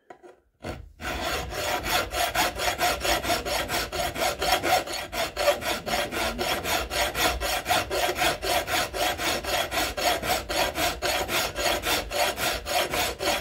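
A flat metal file rasps back and forth across a steel bar in quick strokes.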